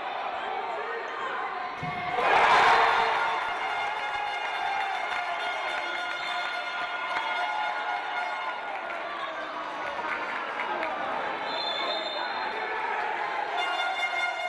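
A crowd cheers and chatters throughout a large echoing hall.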